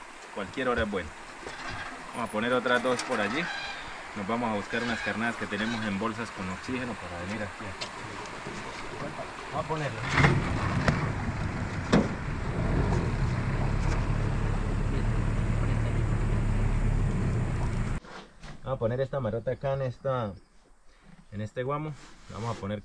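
A man talks calmly up close, outdoors.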